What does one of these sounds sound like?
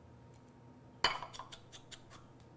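A spoon taps against a ceramic bowl.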